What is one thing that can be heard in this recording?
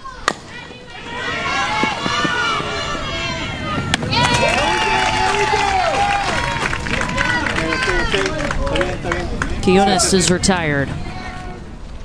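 A crowd cheers loudly.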